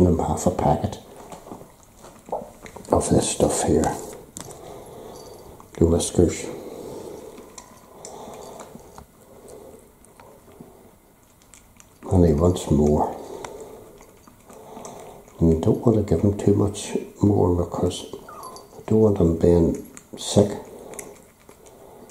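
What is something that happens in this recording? A cat eats from a bowl with soft crunching and lapping.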